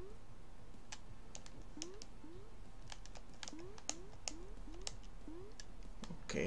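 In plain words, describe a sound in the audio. Short rising electronic blips sound again and again as a small game character jumps.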